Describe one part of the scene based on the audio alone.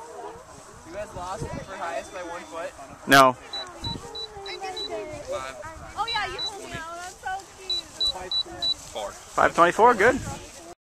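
A young man talks casually close by, outdoors.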